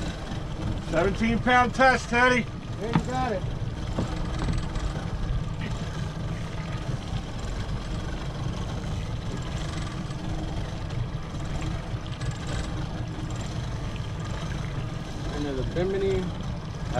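Water splashes and churns behind a boat.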